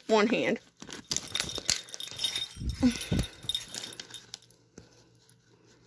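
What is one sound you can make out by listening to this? Plastic packets crinkle and rustle as hands rummage through a bag.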